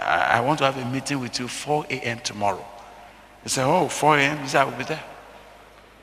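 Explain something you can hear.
A middle-aged man preaches with animation through a microphone in an echoing hall.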